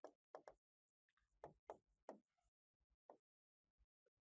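A marker squeaks in short strokes on a board.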